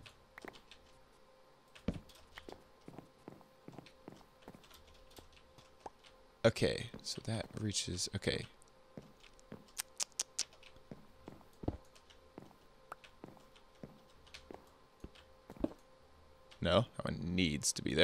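Wooden blocks are set down with short, hollow knocks.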